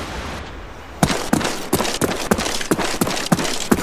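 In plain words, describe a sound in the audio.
A rifle fires a quick series of loud shots.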